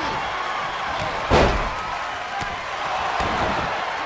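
A wrestler's body slams hard onto the ring mat.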